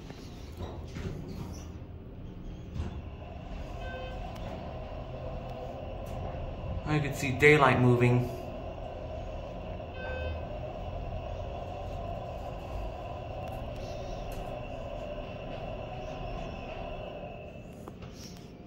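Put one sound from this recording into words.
An elevator hums steadily as it travels down.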